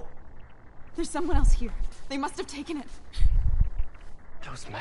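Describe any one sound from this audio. A young woman answers in a frightened, pleading voice.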